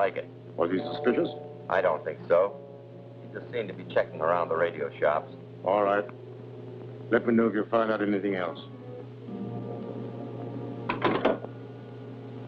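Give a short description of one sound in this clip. A second man answers into a telephone.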